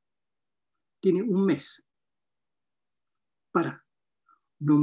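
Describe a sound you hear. An elderly man speaks emphatically in short bursts over an online call.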